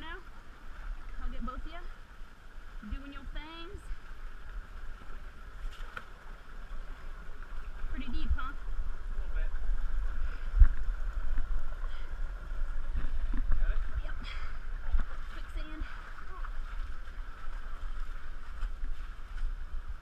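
Feet splash and slosh through shallow water.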